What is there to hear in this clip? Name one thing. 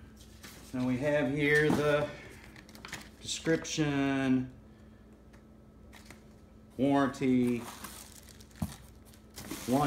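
Cardboard flaps rustle and scrape as they are moved.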